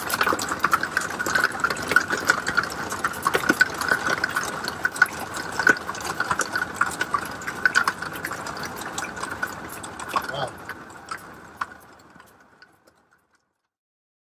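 Heavy rain pours down and patters against a window.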